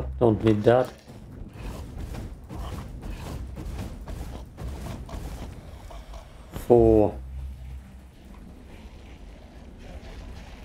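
Swords clash and magic whooshes in quick bursts.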